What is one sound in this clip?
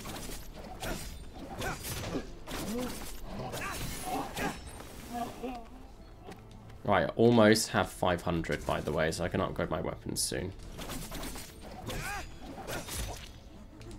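Swords clash and swish in a video game fight.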